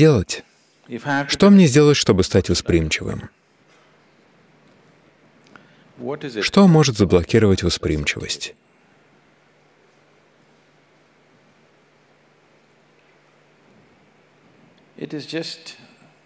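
An elderly man speaks calmly and thoughtfully into a microphone, with long pauses.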